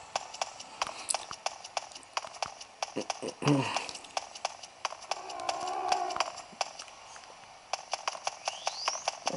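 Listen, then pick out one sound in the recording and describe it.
Footsteps tap steadily on a hard floor through a small speaker.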